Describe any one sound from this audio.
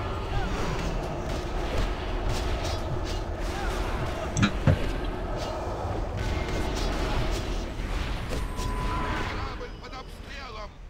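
Weapons clash with sharp impacts.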